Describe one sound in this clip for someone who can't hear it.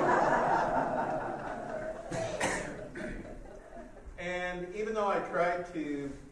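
A man speaks calmly into a microphone, heard over loudspeakers in a large room.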